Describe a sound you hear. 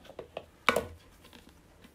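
A ceramic pot lid clinks against its pot.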